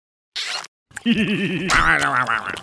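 A man's cartoonish voice speaks with animation.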